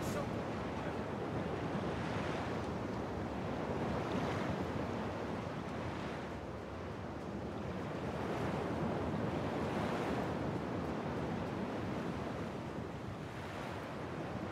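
Footsteps crunch on sand.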